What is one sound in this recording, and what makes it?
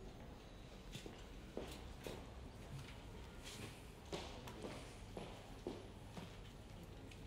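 High heels click steadily on a hard floor.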